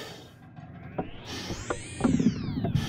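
A metal dial clicks as it turns.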